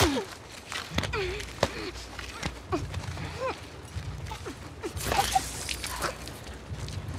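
Bodies scuffle and thud in a close struggle.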